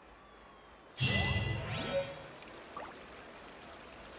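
A bright chime rings out with a shimmering sweep.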